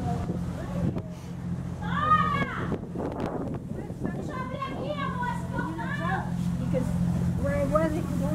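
A ship's engine hums steadily.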